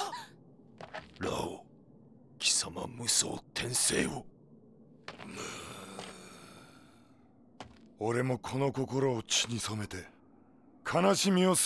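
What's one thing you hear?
A man speaks in a deep, stern voice.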